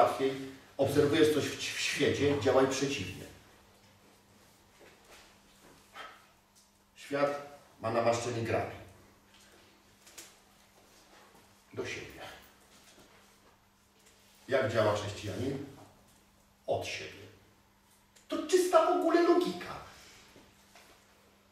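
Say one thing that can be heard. A middle-aged man speaks with animation in short bursts with pauses.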